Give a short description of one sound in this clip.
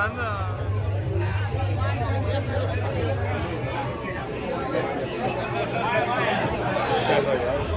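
A crowd of young people chatters loudly all around in an echoing room.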